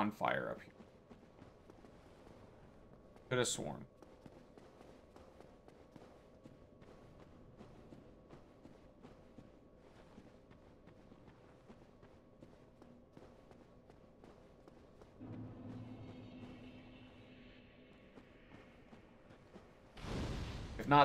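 Footsteps clink steadily on stone.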